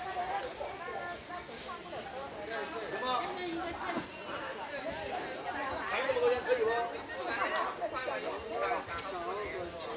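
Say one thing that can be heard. Several adult men and women talk and call out nearby in a busy outdoor crowd.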